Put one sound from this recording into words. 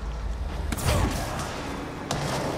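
An explosion booms loudly with an echo.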